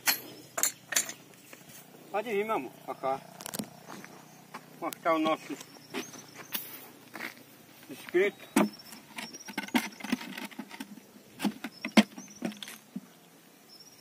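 A trowel scrapes and taps on bricks.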